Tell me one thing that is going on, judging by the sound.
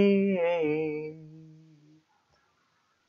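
A young man talks with animation close to a microphone, holding a long drawn-out sound.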